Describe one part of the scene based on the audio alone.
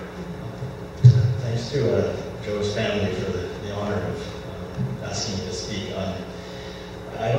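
A man speaks into a microphone through a loudspeaker in a hall.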